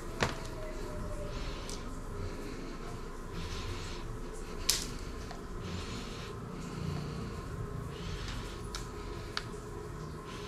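A plug clicks against a wall socket.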